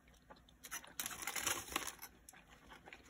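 Aluminium foil crinkles.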